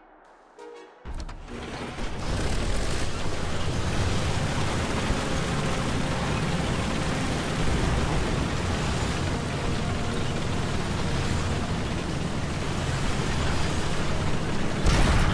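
A tank engine rumbles loudly and steadily.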